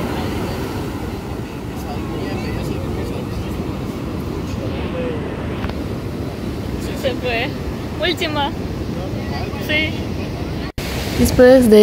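Ocean waves wash and break onto the shore.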